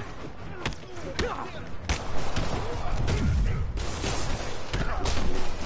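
Punches land with heavy thuds.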